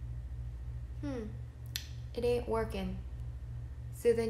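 A young woman speaks briefly and casually, close to a microphone.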